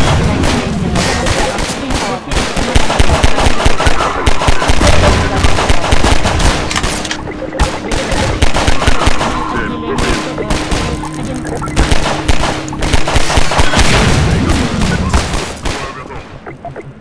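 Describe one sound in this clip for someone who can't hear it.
A pistol fires in quick bursts of sharp shots.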